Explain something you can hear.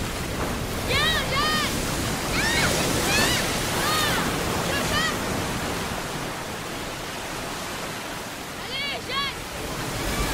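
Children shriek and squeal with delight in the water.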